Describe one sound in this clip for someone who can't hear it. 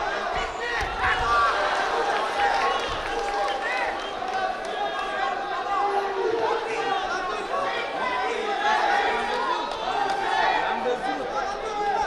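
Shoes squeak sharply on a wrestling mat.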